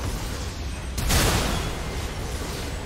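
A loud game explosion booms.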